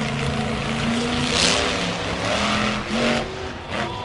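A monster truck crashes onto crushed cars.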